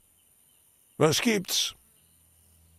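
An elderly man speaks briefly and calmly.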